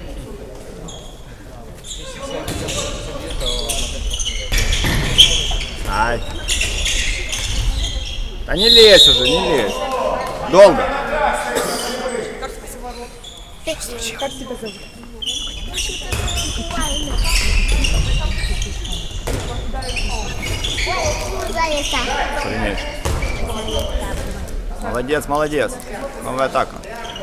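A ball bounces on the wooden floor.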